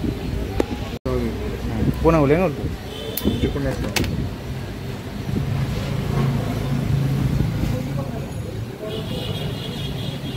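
Hands handle small plastic objects with light taps and rustles.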